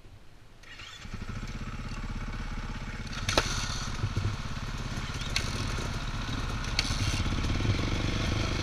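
Dirt bike engines idle and rumble close by.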